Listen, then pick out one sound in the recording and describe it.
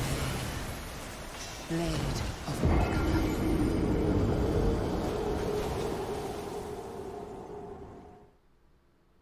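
Swords clash and slash loudly in a fierce fight.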